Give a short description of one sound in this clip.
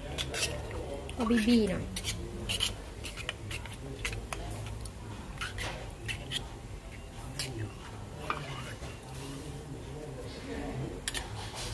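A metal spoon scrapes and clinks against the inside of a tin can.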